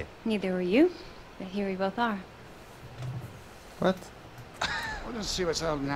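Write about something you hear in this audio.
A young woman answers calmly.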